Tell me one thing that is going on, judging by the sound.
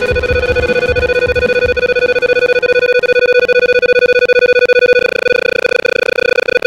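A video game's score counter ticks rapidly with bright beeps.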